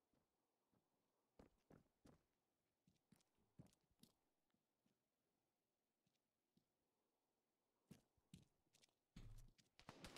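Footsteps scuff on a hard surface.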